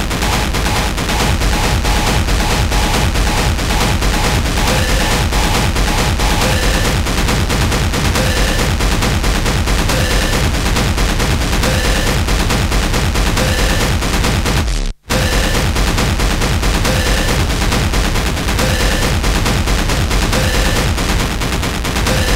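Loud electronic dance music pounds with a fast, hard beat.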